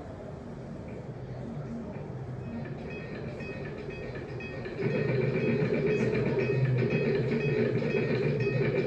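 Electronic drones hum from an amplifier, swelling suddenly louder.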